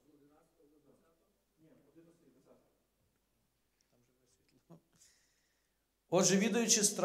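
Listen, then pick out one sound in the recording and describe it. A man preaches through a microphone in a large echoing hall, speaking with animation.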